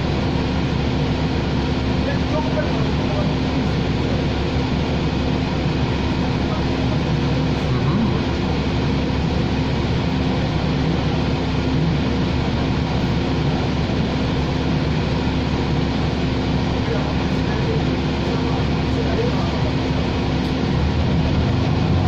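A bus engine idles with a steady low hum, heard from inside.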